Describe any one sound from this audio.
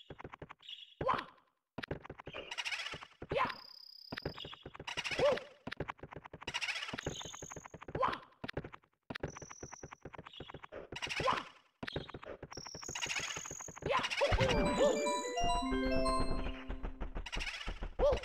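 A cartoon character lets out short jumping cries.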